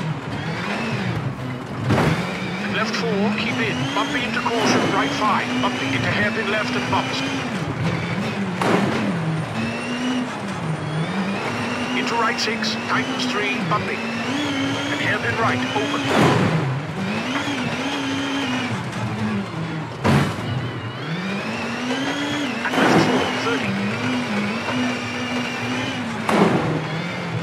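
A rally car engine revs hard, rising and dropping as gears change.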